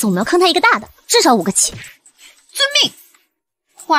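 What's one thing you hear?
A young woman speaks calmly and closely.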